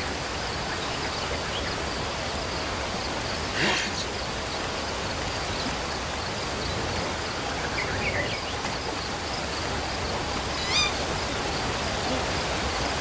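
A waterfall rushes steadily close by.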